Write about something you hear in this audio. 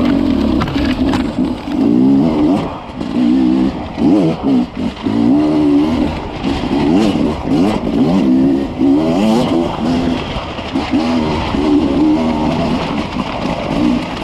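Dry leaves and twigs crunch under tyres.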